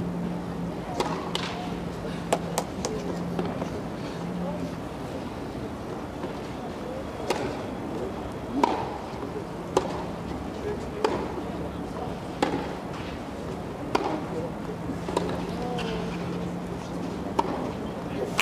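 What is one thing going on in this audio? Tennis balls are struck back and forth with sharp pops in a large open stadium.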